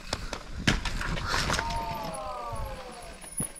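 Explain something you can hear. Bike tyres roll over a dirt trail.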